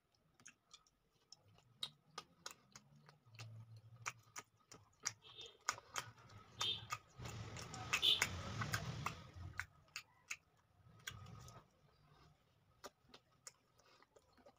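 A man chews and smacks his lips loudly close up.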